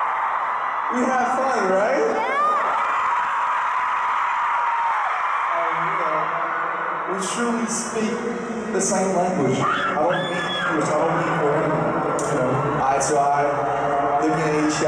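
A young man speaks into a microphone, heard over loudspeakers.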